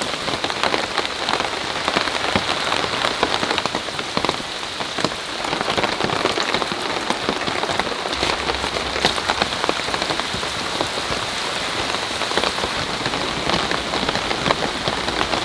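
Raindrops patter on a tarp overhead.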